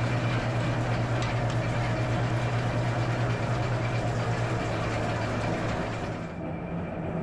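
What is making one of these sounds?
A carding machine hums and rattles steadily close by.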